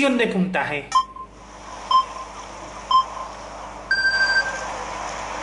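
A game countdown beeps once a second, ending in a higher beep.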